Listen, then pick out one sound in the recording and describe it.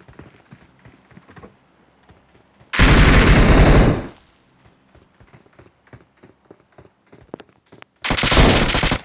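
Footsteps patter quickly on a hard surface.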